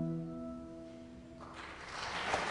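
A young woman sings a long note into a microphone.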